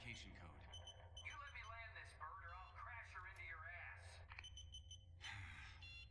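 A man speaks firmly over a headset radio.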